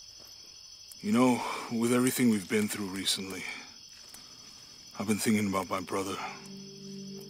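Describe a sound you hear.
A man speaks softly and calmly up close.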